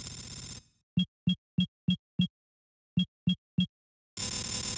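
Short electronic blips sound in quick succession.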